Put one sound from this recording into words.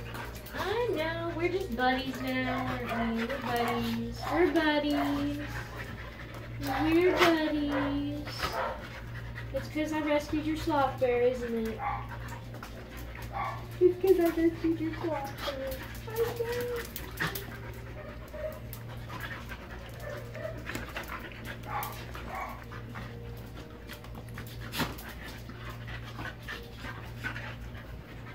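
Dogs growl playfully while wrestling.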